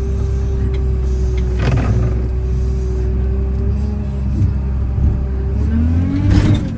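A heavy loader's diesel engine rumbles steadily, heard from inside the cab.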